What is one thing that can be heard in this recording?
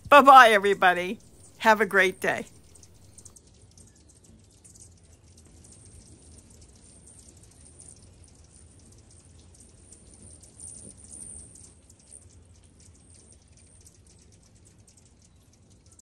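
Small birds chirp and twitter nearby.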